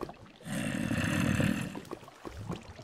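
Water flows and splashes nearby.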